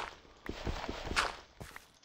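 Dirt crunches as blocks are dug out.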